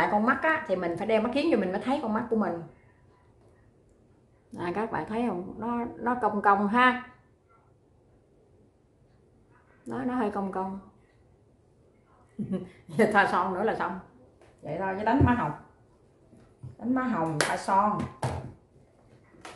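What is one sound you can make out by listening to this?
A middle-aged woman talks calmly close to the microphone, pausing often.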